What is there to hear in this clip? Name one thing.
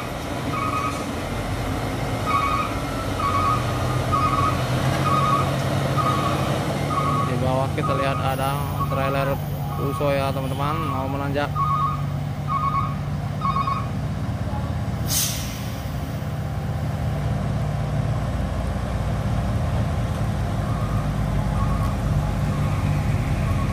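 A heavy truck engine rumbles steadily nearby.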